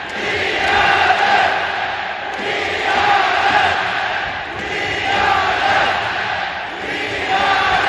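A huge stadium crowd chants loudly in rhythmic waves.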